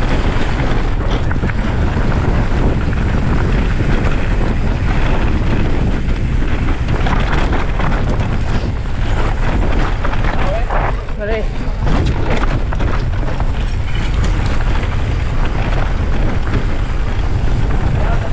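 Bicycle tyres crunch and rattle over a rocky dirt trail.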